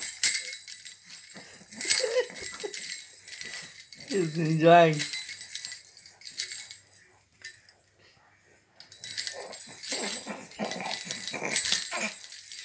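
A baby rattle jingles and clicks.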